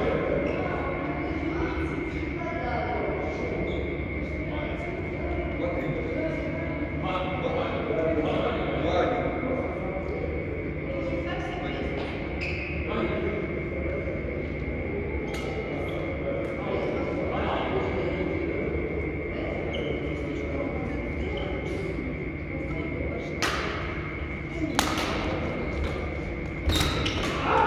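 Rackets hit a shuttlecock back and forth with sharp pops in a large echoing hall.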